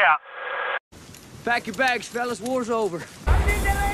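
A young man shouts angrily outdoors.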